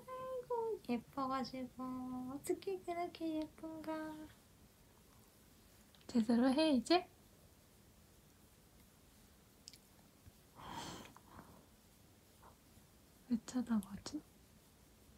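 A young woman speaks sweetly and playfully close by.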